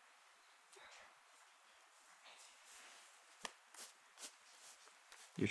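Playing cards are shuffled by hand with soft rustling.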